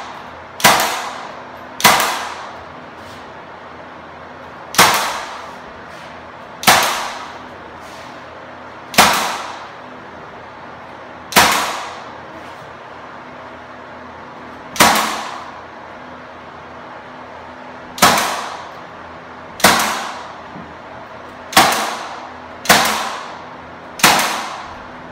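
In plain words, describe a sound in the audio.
A nail gun fires sharp, loud shots now and then, each ringing out in an echoing empty room.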